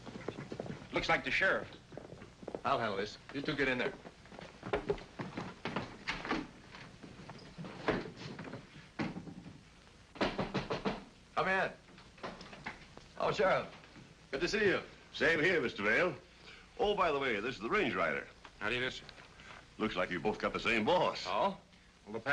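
Men talk with each other indoors.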